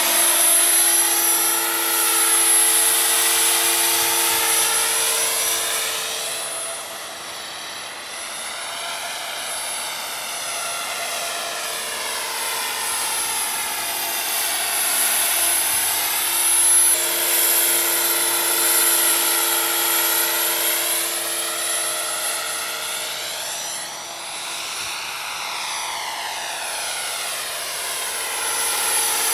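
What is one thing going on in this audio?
A model helicopter's engine whines loudly overhead, its pitch rising and falling as it passes back and forth.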